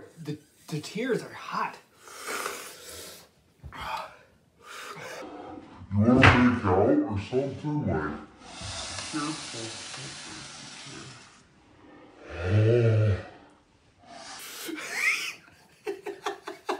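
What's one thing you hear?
A young man talks and laughs loudly close to a microphone.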